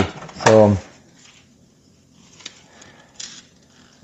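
Packaging rustles and crinkles in a man's hands.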